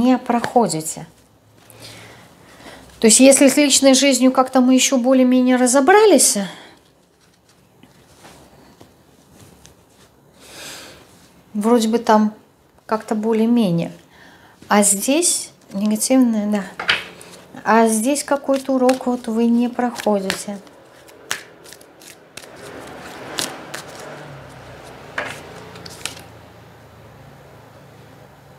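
Cards shuffle and rustle softly.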